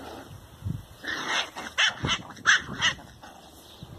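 Puppies yip and squeal in short high bursts.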